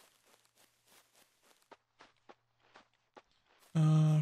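Footsteps pad softly through grass.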